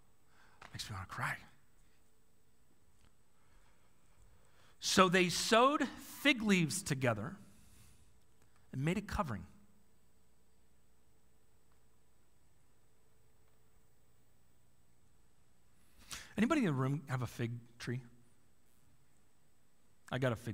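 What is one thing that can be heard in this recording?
A man speaks into a microphone in short bursts with long pauses.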